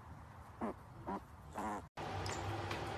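A piglet grunts softly.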